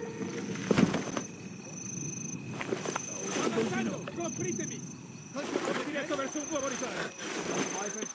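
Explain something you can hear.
Clothing rustles as someone crawls.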